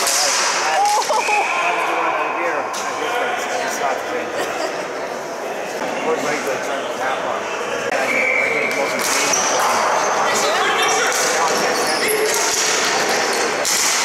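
Sticks clack and scrape on a hard floor in a large echoing arena.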